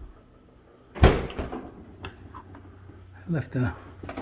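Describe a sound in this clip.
A refrigerator door is pulled open.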